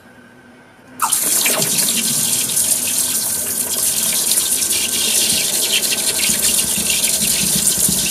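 Molten metal hisses and crackles loudly as it pours into water.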